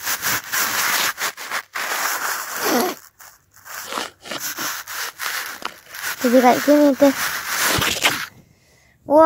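Cloth rustles and scrapes close by.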